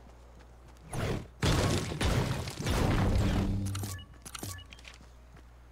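A pickaxe strikes rock with loud, repeated blows.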